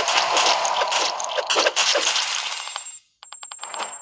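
Coins jingle as they are collected.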